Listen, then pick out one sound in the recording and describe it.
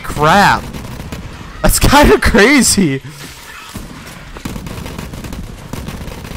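A video game shotgun fires.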